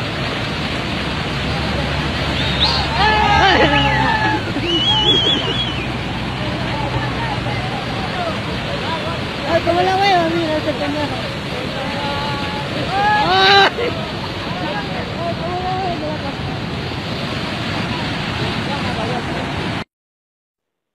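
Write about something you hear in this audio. Floodwater roars and rushes loudly.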